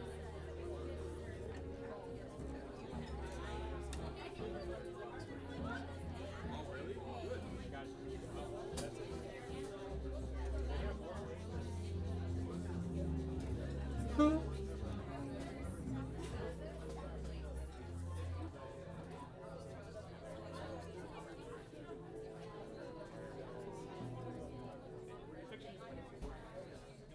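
A drummer plays softly on drums and cymbals.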